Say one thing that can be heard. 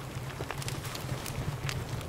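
A campfire crackles nearby.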